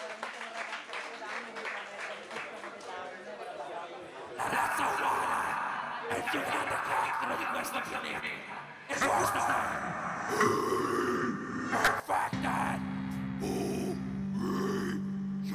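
A rock band plays loudly in a live hall.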